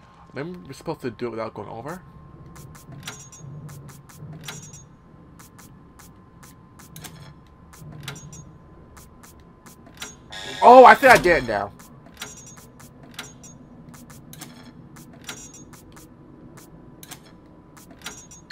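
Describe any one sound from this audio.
Switches click as they are flipped.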